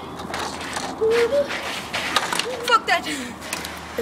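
A plastic toy clatters on the ground.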